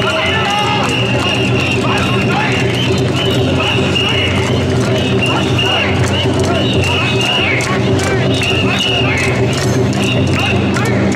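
A large crowd of men chant loudly in rhythm close by.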